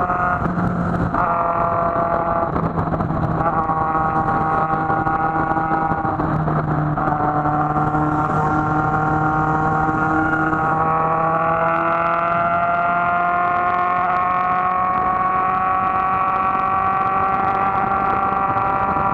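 Wind rushes past in a steady roar.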